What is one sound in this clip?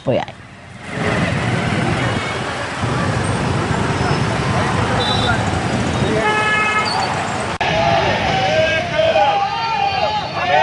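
Motorbikes and cars rumble past in heavy traffic.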